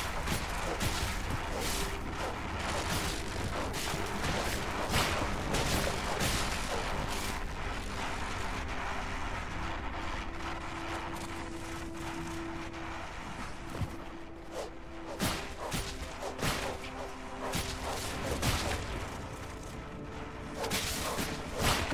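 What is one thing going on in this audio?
Game combat hits thud and clang.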